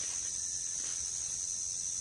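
A small rodent nibbles at a fruit.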